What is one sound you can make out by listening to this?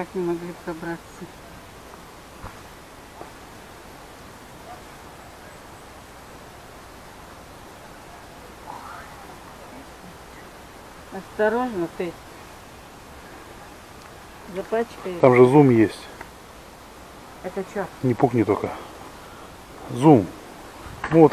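An elderly woman speaks in short bursts close by.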